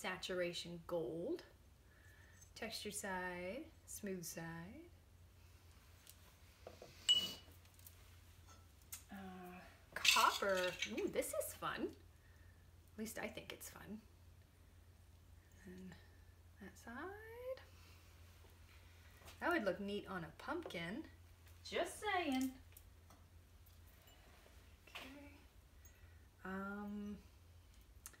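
A woman speaks calmly and clearly nearby, in short phrases with pauses.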